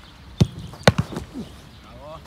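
A goalkeeper lands with a thump on grass.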